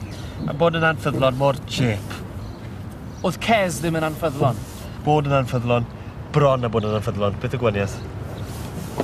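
A middle-aged man speaks sarcastically from close by.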